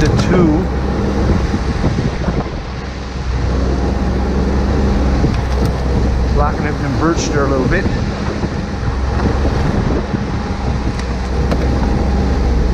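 A snowmobile engine drones steadily nearby.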